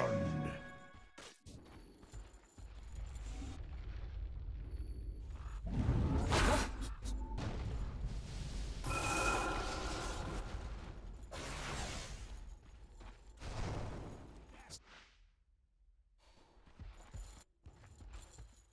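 Magic spells whoosh and crackle in a fantasy battle game.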